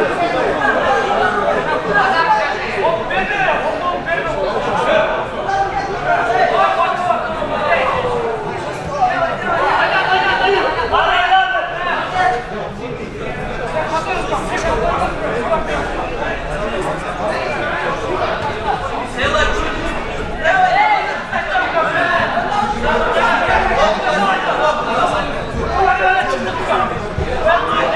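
A crowd of spectators talks and shouts throughout in a large echoing hall.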